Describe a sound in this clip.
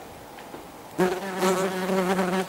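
Yellowjacket wasps buzz in flight.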